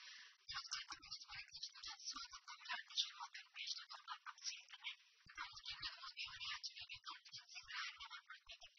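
A young woman reads out the news calmly through a microphone.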